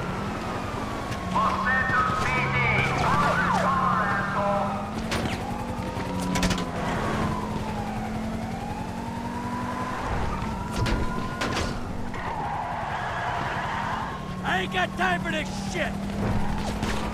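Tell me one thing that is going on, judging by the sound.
A car engine hums steadily as the car drives fast.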